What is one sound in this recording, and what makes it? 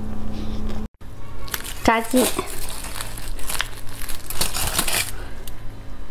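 Crispy fried chicken crackles as it is torn apart by hand.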